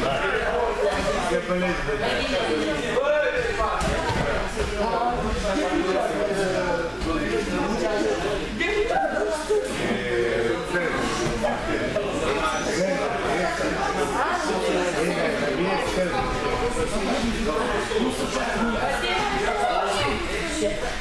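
Many voices of children and young men chatter and call out in a large echoing hall.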